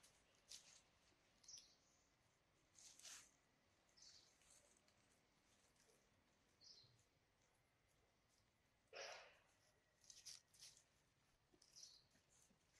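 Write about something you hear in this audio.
Dry leaves rustle and crackle as monkeys shift on the ground.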